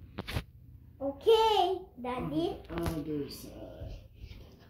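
A young child exclaims loudly nearby.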